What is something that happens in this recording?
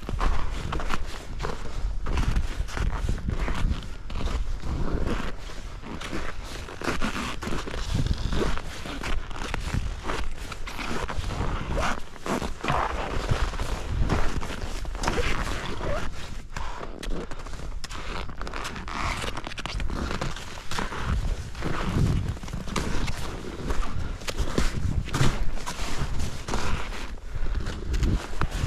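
Wind rushes past close by.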